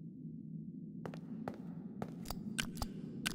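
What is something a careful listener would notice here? A microphone is bumped and knocked close up.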